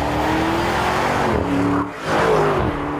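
A V8 SUV drives by at speed.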